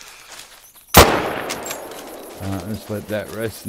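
A rifle fires a single loud shot that echoes away.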